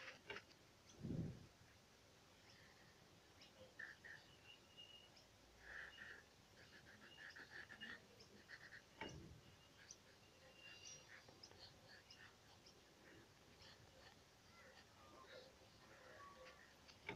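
A pencil scratches softly across paper in short strokes.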